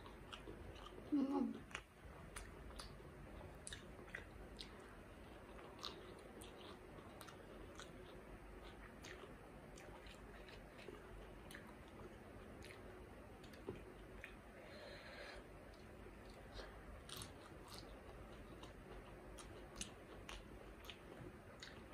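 A woman chews with crunchy, wet sounds close to a microphone.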